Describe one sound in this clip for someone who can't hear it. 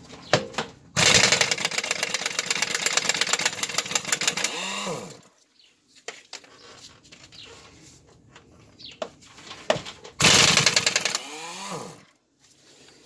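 An impact wrench rattles loudly in short bursts.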